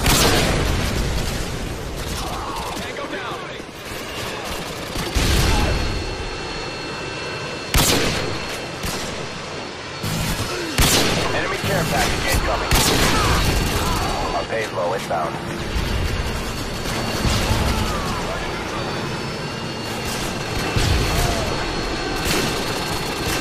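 A sniper rifle fires loud, sharp shots now and then.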